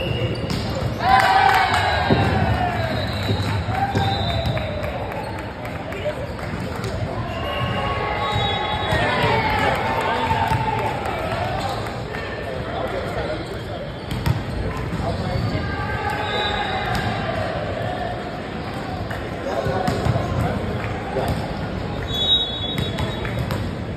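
Young men chatter and call out to each other across an echoing hall.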